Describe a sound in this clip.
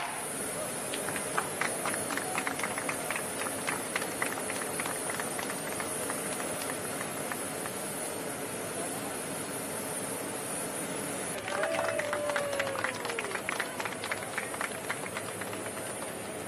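People clap their hands outdoors.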